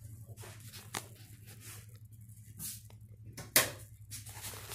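Clothing rustles and knocks against a phone.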